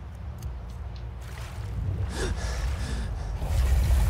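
Water sloshes and splashes around a swimmer.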